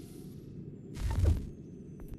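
A low whoosh sweeps past.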